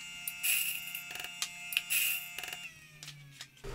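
A coffee grinder whirs and clicks.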